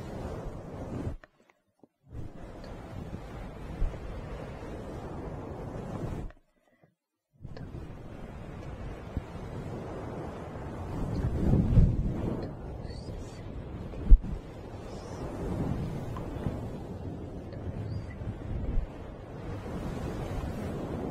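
Hands brush and rustle close to the microphone.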